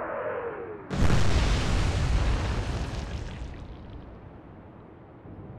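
Shells explode in the sea with rumbling splashes.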